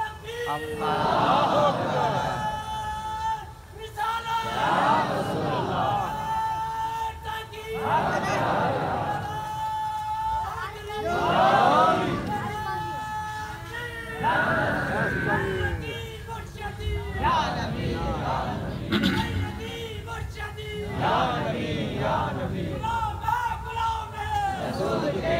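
A man sings a melodic chant through loudspeakers, echoing outdoors.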